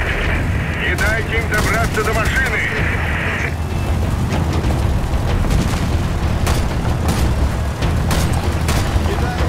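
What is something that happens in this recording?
Rifle shots fire in short bursts.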